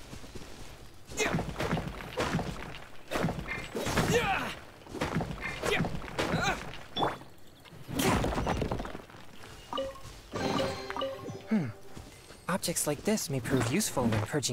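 A sword swooshes through the air in quick slashes.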